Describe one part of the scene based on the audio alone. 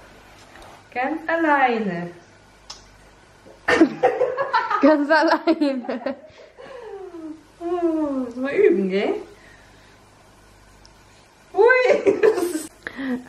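A young woman talks playfully to a baby nearby.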